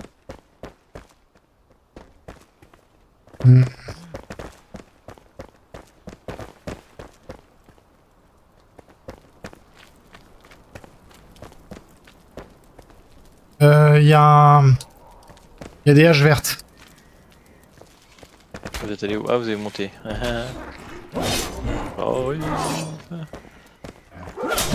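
Armored footsteps clatter on stone.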